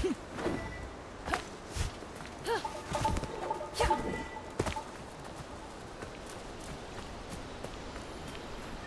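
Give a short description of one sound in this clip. Light footsteps run over stone and then soft grass.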